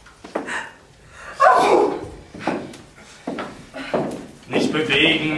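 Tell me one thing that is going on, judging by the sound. A man and a woman exclaim loudly in bursts, with an echo in the room.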